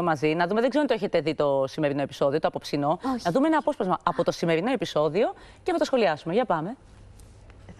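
Another woman answers calmly close to a microphone.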